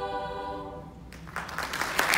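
A choir of young women sings a final held chord in a large hall.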